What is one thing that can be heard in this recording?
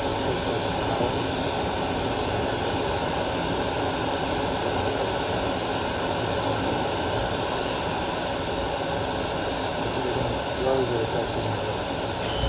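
A gas torch roars steadily with a loud hissing flame.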